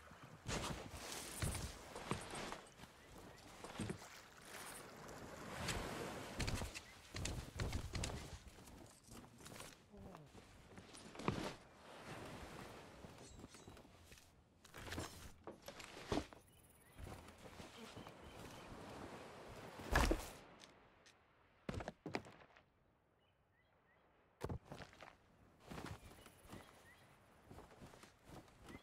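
Footsteps crunch over sand and stone.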